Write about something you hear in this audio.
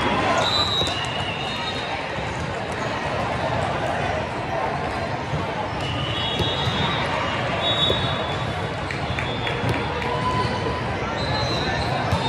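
A volleyball thuds as a player bounces it.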